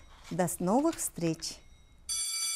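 A woman speaks warmly and clearly into a microphone.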